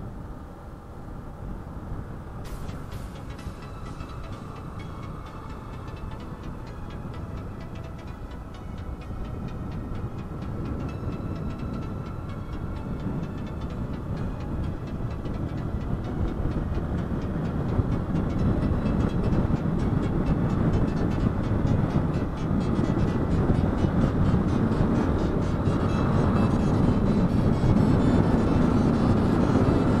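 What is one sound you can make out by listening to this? A motorcycle engine hums steadily as it rides along a road, growing louder as it speeds up.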